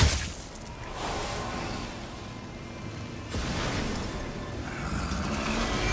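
A magical energy hums and crackles.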